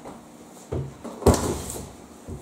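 A heavy cardboard box thumps down onto a surface.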